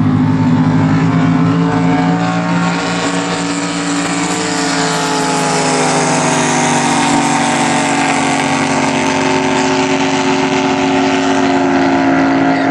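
A racing boat's engine roars loudly as it speeds across the water.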